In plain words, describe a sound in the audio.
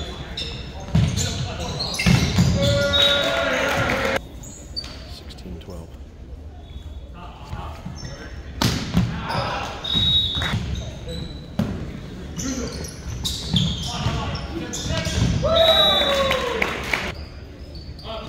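A crowd of spectators cheers and shouts in an echoing hall.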